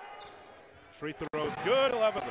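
A basketball drops through the hoop's net.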